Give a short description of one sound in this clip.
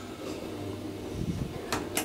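A finger presses an elevator button with a soft click.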